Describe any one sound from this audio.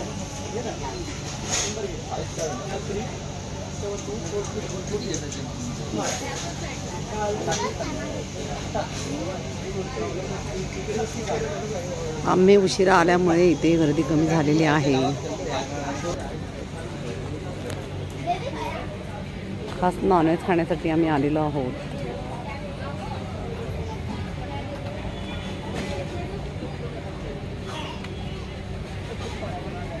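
Men and women chatter in a crowd in the background.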